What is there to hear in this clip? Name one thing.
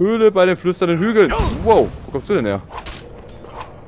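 A sword slashes with a sharp hit.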